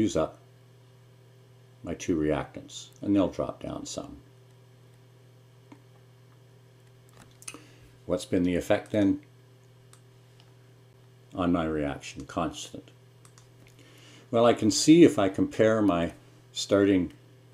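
A middle-aged man speaks calmly and explains into a close microphone, with pauses between phrases.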